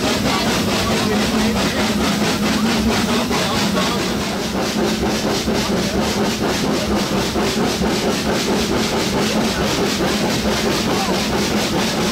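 Train wheels rattle and clatter over the rails.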